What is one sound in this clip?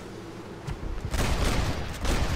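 A gunshot cracks.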